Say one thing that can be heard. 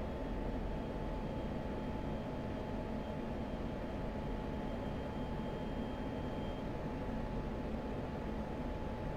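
A jet engine roars steadily in the cockpit.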